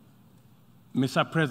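A man begins a speech through a microphone.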